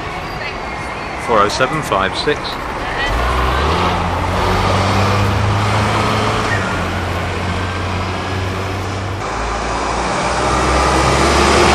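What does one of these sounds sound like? A bus engine hums as a bus drives slowly past, close by.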